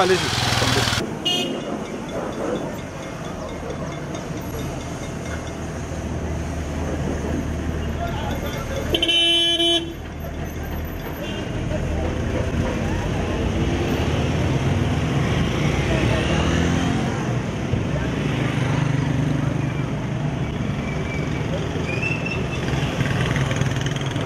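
Cars idle and pass along a street.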